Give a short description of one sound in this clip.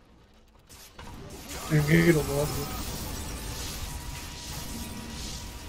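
Game battle effects crackle and clash.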